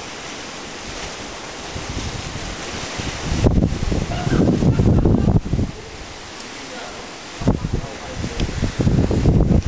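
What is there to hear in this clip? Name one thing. Waves crash and surge against rocks.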